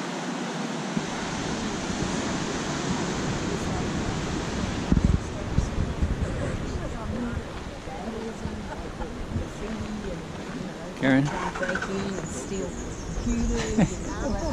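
Wind blows across the microphone.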